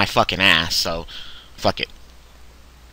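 A short electronic sound effect plays as cards are placed in a game.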